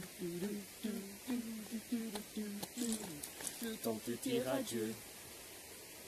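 A young woman sings loudly nearby.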